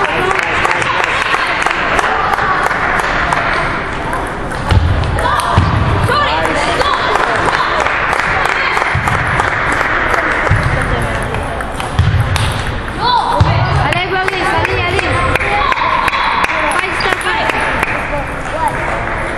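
A ping pong ball clicks sharply back and forth off paddles and the table.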